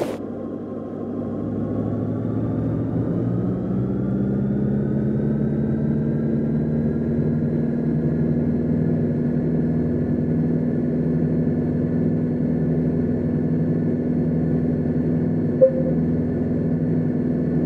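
A small aircraft engine starts up and settles into a steady idle hum.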